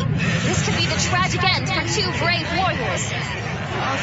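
A young girl cries out in alarm.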